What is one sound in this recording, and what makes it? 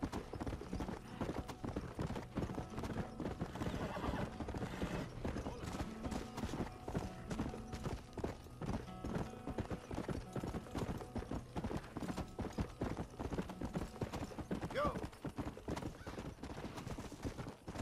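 A galloping horse's hooves pound quickly and steadily on the ground.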